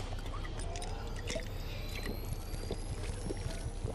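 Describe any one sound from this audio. A shimmering magical tone rises slowly.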